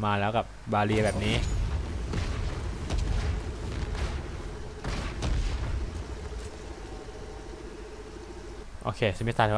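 A weapon beam hums and crackles in a video game.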